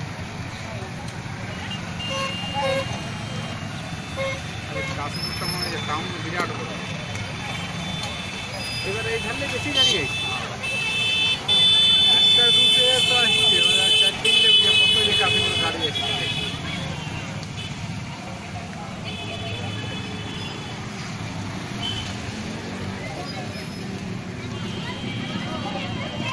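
Motorcycle engines idle and rumble in slow traffic.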